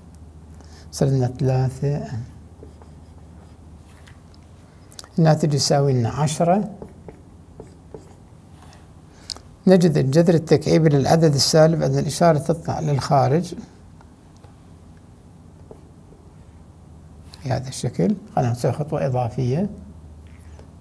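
An older man speaks calmly and clearly, pausing between phrases, as if explaining.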